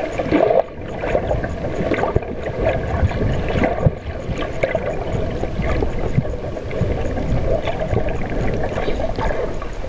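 A dolphin chirps and whistles close by underwater.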